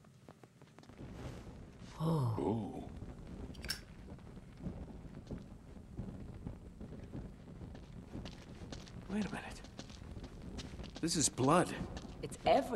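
A torch flame roars and crackles.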